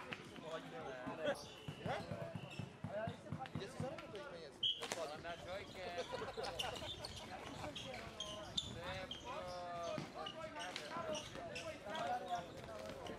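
Men call out and shout to one another during a game outdoors.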